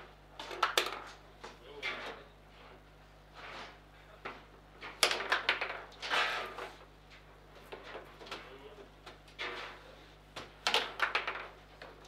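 A small hard ball clacks sharply against table figures and walls.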